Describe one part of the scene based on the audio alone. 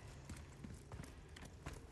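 Boots clank on the rungs of a metal ladder.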